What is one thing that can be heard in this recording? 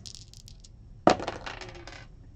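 Dice clatter onto a table.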